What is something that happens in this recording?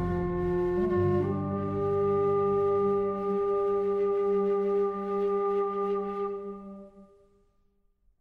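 A woodwind pipe plays a slow, sustained melody that fades out.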